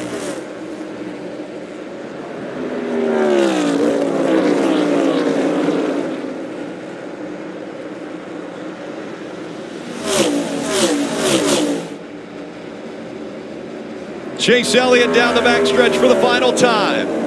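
Race car engines roar loudly as cars speed past, their pitch dropping as they go by.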